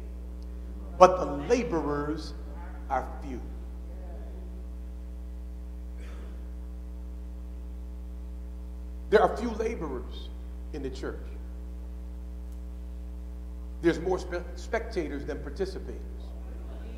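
A man preaches with animation through a microphone, in bursts with long pauses, in a large echoing hall.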